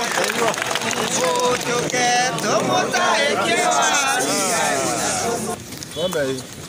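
A large crowd outdoors chants and cheers loudly.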